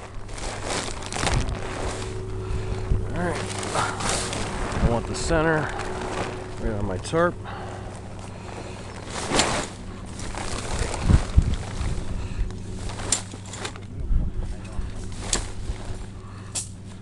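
Nylon tent fabric rustles and crinkles as it is handled.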